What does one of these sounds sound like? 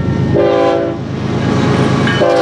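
A train rumbles past close by.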